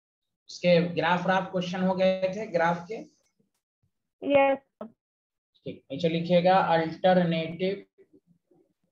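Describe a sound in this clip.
A man explains calmly like a teacher, heard through a microphone on an online lecture.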